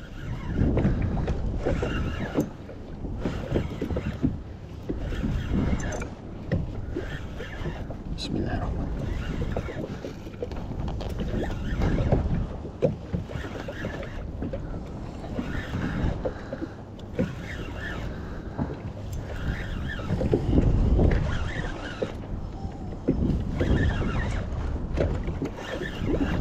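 Waves slap against the side of a small boat.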